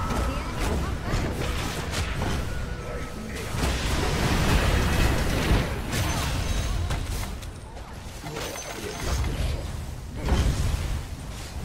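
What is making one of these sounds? Spell effects and weapon hits crash and whoosh in a busy fight.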